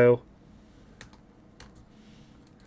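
Hard plastic card cases click and tap as they are handled.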